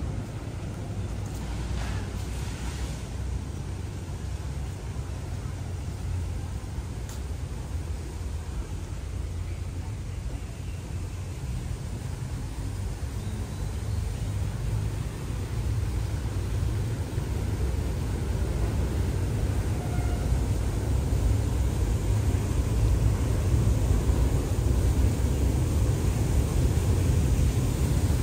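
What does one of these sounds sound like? Wind blows outdoors, rustling leaves.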